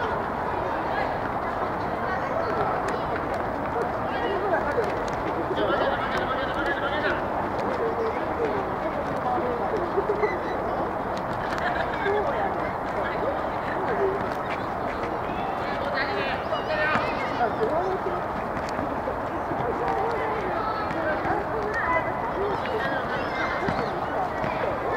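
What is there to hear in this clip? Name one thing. Children shout and call out across an open field.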